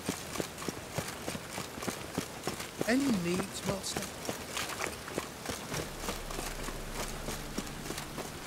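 Boots tread steadily on cobblestones at a brisk walk.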